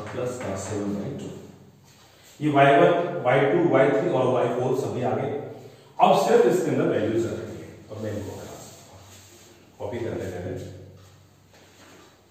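A man speaks in a lecturing tone, close by.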